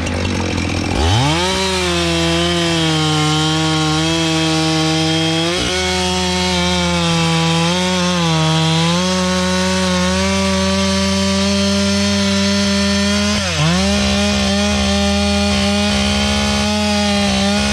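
A chainsaw starts up and roars loudly as it cuts through a log.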